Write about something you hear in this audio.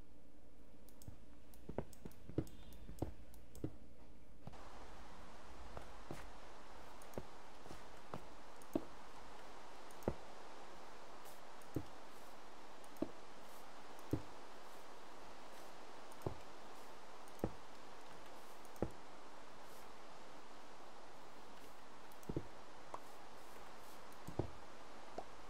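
Stone blocks break and clatter in a game.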